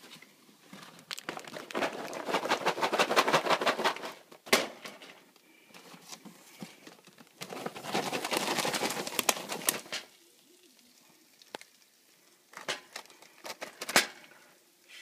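A plastic-wrapped popcorn bag crinkles as it is unwrapped.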